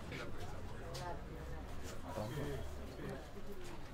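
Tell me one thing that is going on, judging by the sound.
Cloth rustles as it is pulled away.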